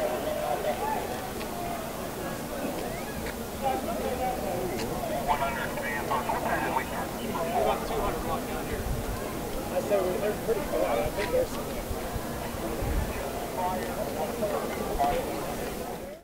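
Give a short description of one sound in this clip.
Several adults talk over one another outdoors.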